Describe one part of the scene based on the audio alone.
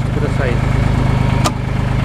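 A metal door latch clicks.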